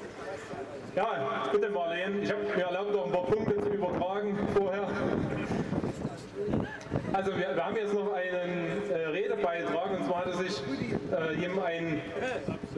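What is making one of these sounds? A man speaks forcefully into a microphone, heard through loudspeakers outdoors.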